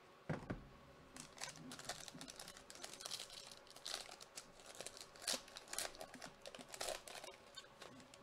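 A foil wrapper crinkles and tears as it is opened by hand.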